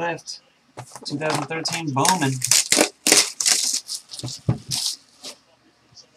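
A cardboard box knocks and scrapes on a table.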